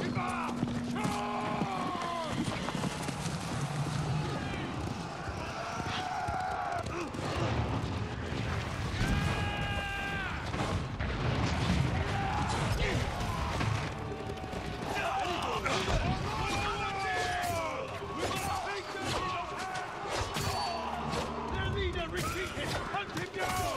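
Men shout battle cries loudly.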